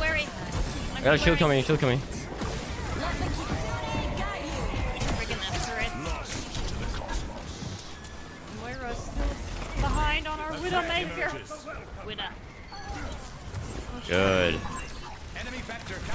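Game weapons fire with rapid zaps and blasts.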